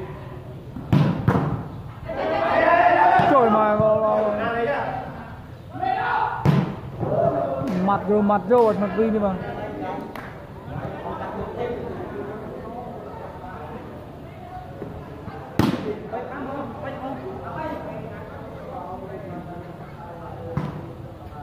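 Hands strike a volleyball with sharp slaps.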